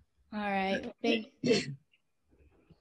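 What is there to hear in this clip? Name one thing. A woman speaks briefly and cheerfully over an online call.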